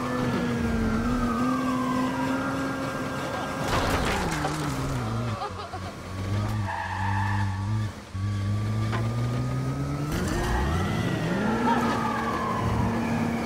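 Tyres screech as a car skids through turns.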